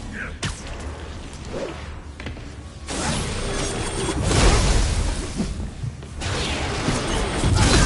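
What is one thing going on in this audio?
Heavy blows thud during a fight.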